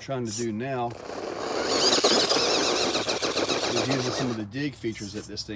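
A small electric motor whines loudly.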